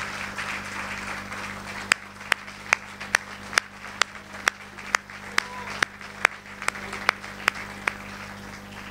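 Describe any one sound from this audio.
A crowd claps, then slows to a few single claps.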